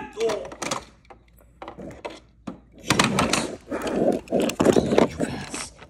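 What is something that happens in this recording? Plastic toy vehicles clatter and knock against each other.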